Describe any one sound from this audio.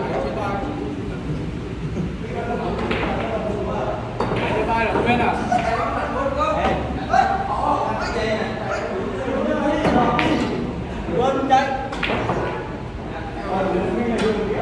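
Young men talk and laugh nearby.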